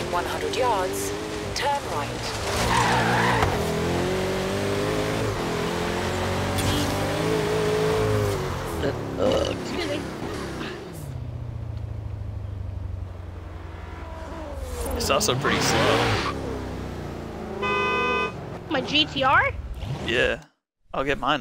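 A powerful car engine roars and revs at high speed.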